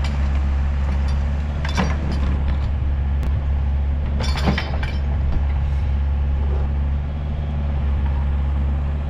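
An excavator engine rumbles steadily nearby, outdoors.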